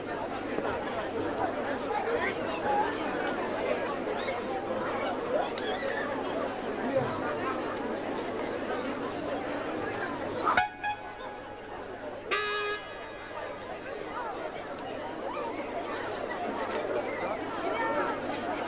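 A band plays keyboard and electric guitar music through loudspeakers.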